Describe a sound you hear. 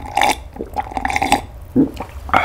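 A man sips and gulps a drink close by.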